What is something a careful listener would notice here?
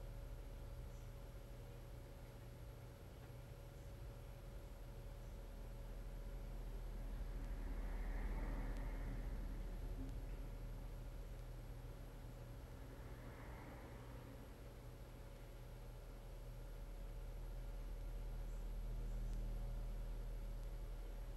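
A man breathes slowly and deeply nearby.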